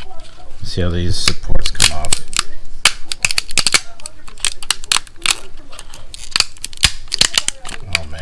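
A plastic part clicks and taps as it is handled.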